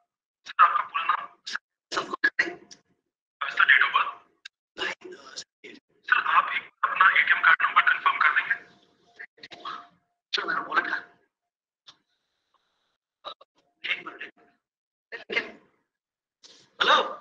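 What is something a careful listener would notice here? A man talks on a phone, heard through a computer's speakers.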